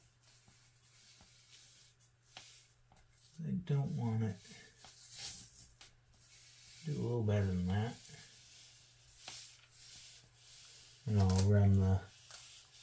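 Paper rustles softly as hands press and smooth a strip.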